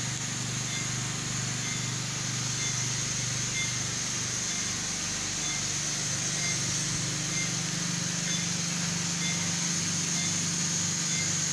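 A patient monitor beeps at a steady, regular pace.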